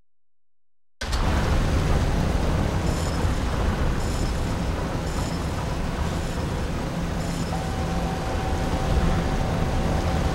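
A low, steady rumbling drone fills an echoing space.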